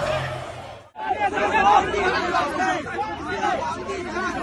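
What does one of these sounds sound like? Several men talk loudly and argue close by.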